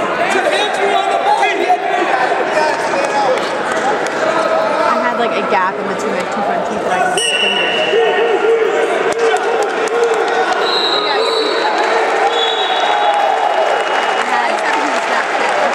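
Several men shout encouragement loudly in a large echoing hall.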